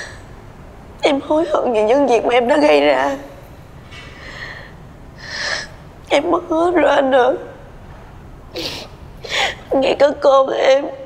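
A young woman speaks tearfully and pleadingly, close by.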